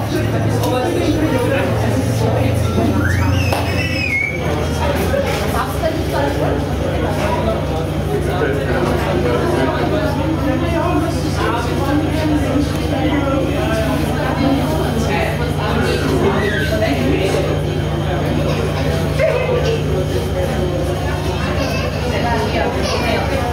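Several adults talk at once in the background, with voices echoing off hard walls.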